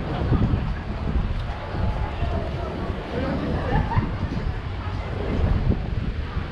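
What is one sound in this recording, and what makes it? Men and women chat quietly at a distance.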